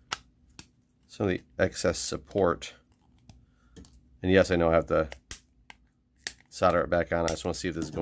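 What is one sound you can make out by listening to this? Pliers click and snip a thin wire.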